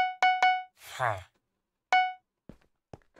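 A short bright chime rings several times.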